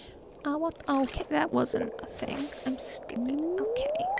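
A fishing line is cast out with a quick swish.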